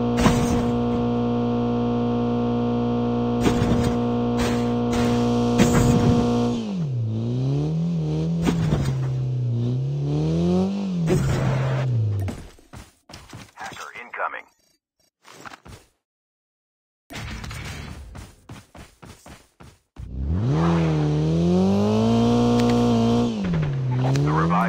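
A car engine drones steadily, then revs up and down as it drives.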